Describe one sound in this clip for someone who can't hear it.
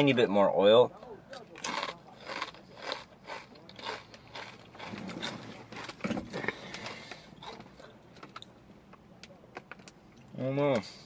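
A man eats with soft crunching and smacking sounds.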